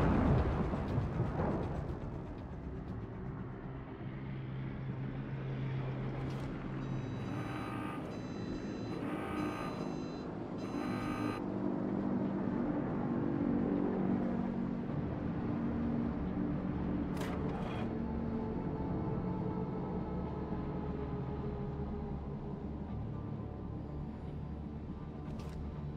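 A ship's engine rumbles steadily and low.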